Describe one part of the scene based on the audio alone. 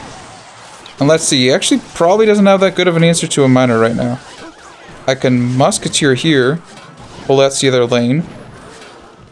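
A young man talks animatedly and close into a microphone.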